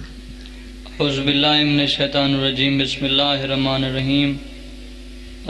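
A young man chants in a drawn-out, melodic voice through a microphone and loudspeakers.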